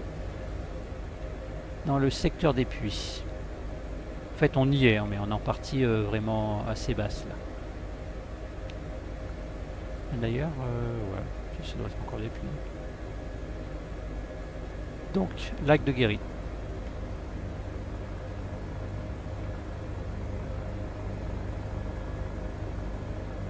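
A helicopter's engine and rotor drone steadily.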